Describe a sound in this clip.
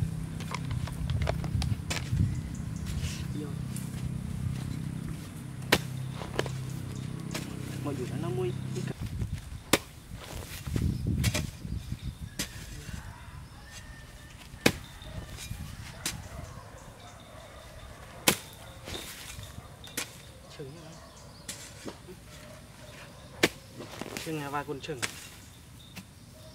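A hoe thuds and scrapes into dry soil.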